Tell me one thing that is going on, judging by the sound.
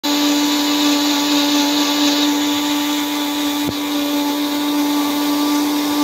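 A small electric grinder motor whirs loudly and steadily.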